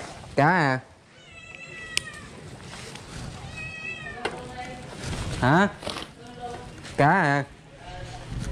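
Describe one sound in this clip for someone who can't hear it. A puppy yelps in short, high whines.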